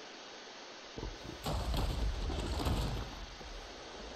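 A large winged creature flaps its wings in flight.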